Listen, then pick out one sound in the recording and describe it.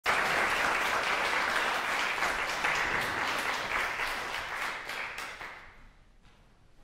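An audience applauds loudly in an echoing hall, then the clapping fades away.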